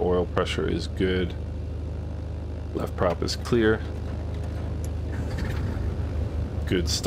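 An aircraft engine idles with a low, steady hum.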